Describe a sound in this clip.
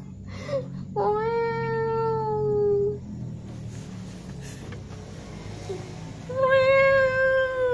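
A cat meows loudly in long, drawn-out cries.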